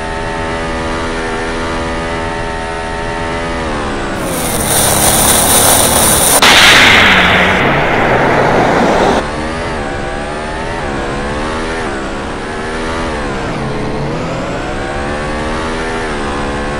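An open-wheel racing car engine screams at high revs, and its pitch drops when braking into corners.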